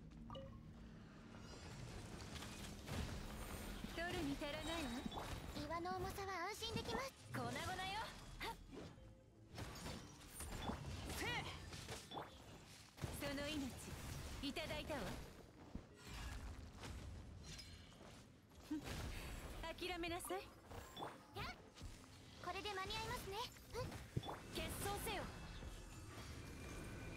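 Video game battle effects crash and boom in rapid bursts.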